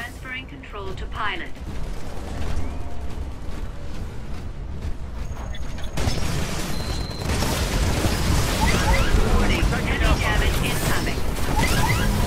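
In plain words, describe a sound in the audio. A large machine's heavy footsteps thud and clank.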